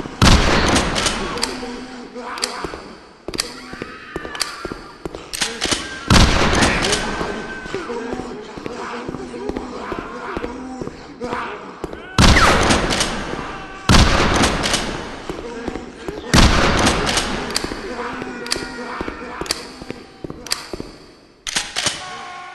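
A shotgun fires loud blasts that echo.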